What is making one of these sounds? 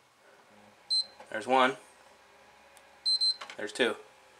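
A game console gives a short electronic beep.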